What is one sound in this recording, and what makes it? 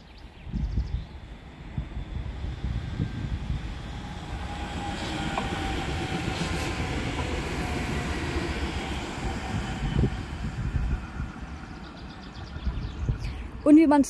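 A train rumbles past on rails and fades into the distance.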